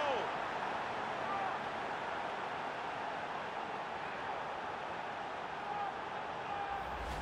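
Fans whistle loudly in a stadium.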